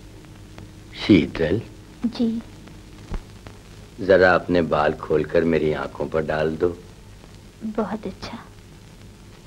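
A woman speaks softly, close by.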